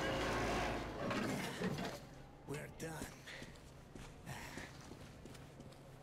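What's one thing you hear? A man sighs wearily.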